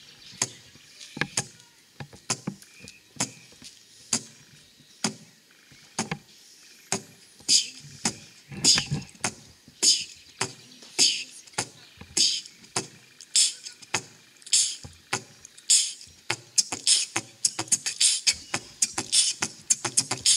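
A young man beatboxes into a microphone with sharp percussive clicks and hisses.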